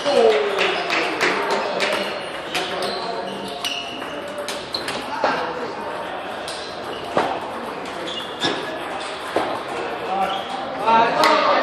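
Ping pong balls click sharply against paddles and tables, echoing in a large hall.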